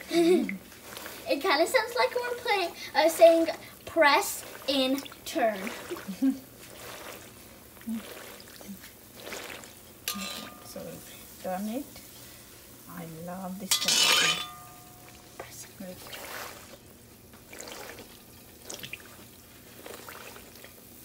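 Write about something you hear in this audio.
Oil sizzles and bubbles as food fries.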